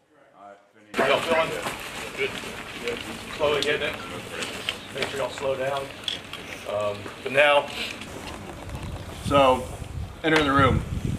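A man explains calmly outdoors, close by.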